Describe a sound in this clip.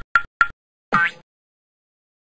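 A man speaks with animation in a squeaky cartoon voice.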